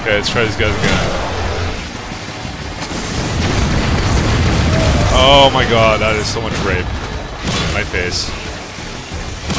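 An energy weapon fires crackling electric bursts.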